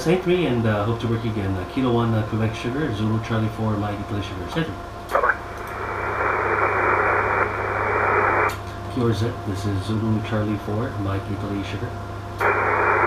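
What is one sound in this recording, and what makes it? A man speaks calmly into a microphone close by.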